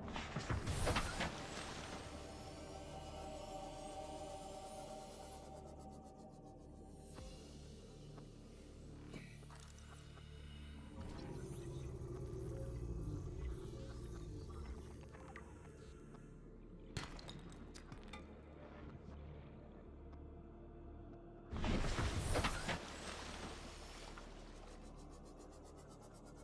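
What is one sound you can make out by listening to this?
A small submarine's engine hums steadily underwater.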